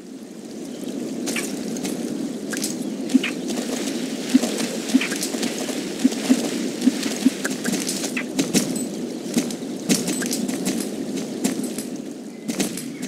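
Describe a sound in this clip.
A horse gallops with quick, regular hoofbeats.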